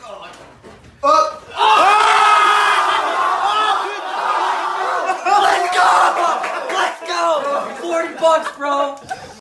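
A young man shouts and yells loudly close by.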